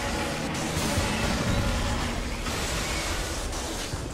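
A heavy gun fires in bursts.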